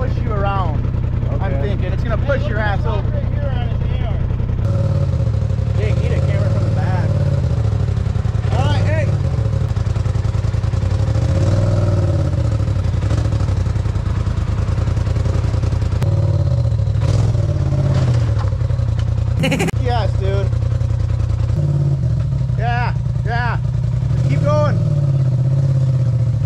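An off-road vehicle's engine rumbles and revs as it crawls over rocks.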